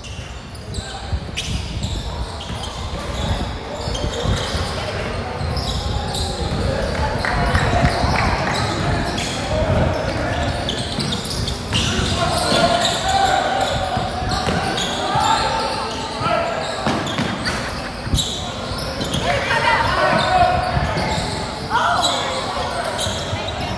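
A basketball bounces with dull thuds in a large echoing gym.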